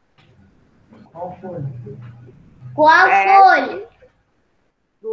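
A young boy speaks over an online call.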